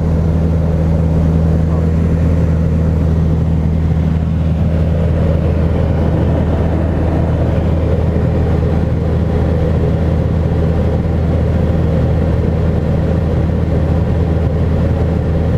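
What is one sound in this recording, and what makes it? A small plane's propeller engine drones steadily and loudly.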